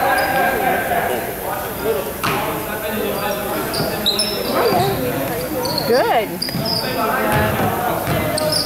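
A crowd of spectators chatters and calls out in the distance.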